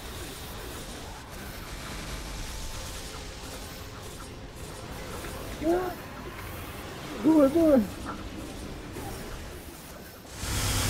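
Game spell effects whoosh and burst during a battle.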